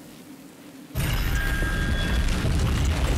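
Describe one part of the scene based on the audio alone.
A loud rumbling blast of debris bursts up.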